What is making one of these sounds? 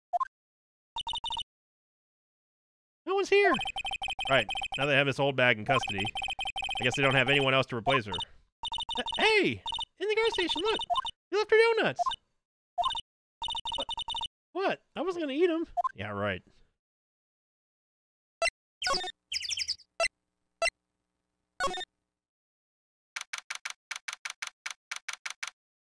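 Quick electronic blips tick rapidly in a steady run.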